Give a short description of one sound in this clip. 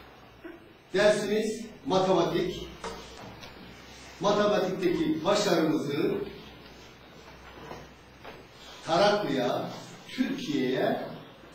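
A middle-aged man speaks calmly and clearly nearby.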